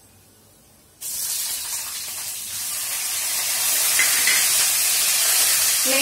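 Liquid pours into a hot pan and sizzles loudly.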